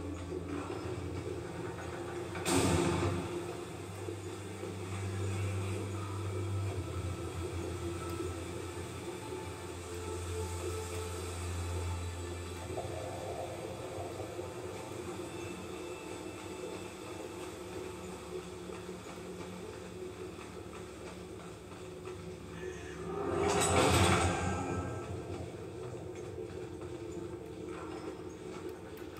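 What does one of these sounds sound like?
Game music and effects play from a television's loudspeakers.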